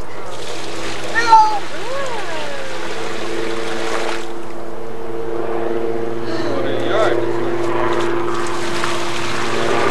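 Water splashes as a man sweeps his hand through a paddling pool.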